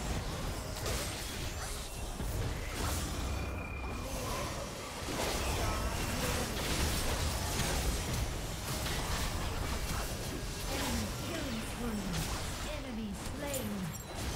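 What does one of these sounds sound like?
Game spell effects whoosh and crackle in rapid bursts.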